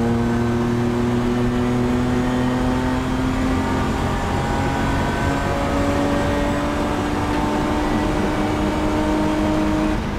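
A racing car engine roars loudly from inside the cabin, its pitch falling then slowly rising.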